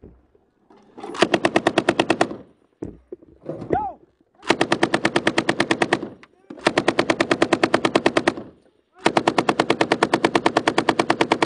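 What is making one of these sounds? A machine gun fires long, rapid bursts close by.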